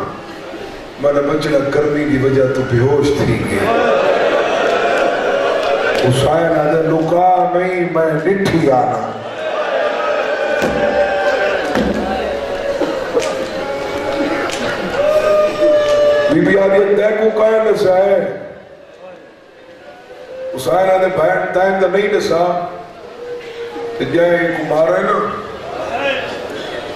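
A man recites loudly and with passion into a microphone, heard through loudspeakers.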